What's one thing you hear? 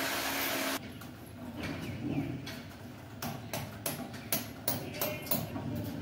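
A hammer taps on a wall.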